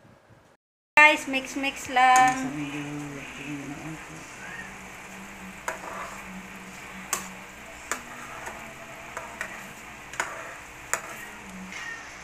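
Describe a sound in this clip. A spatula stirs and scrapes against a pan.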